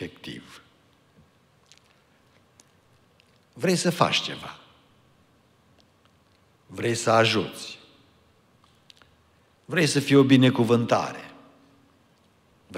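An elderly man speaks slowly through a microphone in a reverberant hall, with long pauses.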